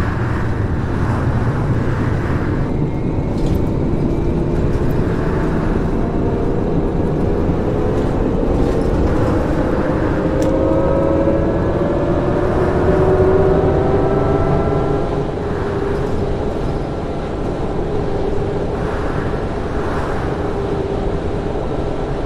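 A bus engine rumbles and rises in pitch as the bus speeds up.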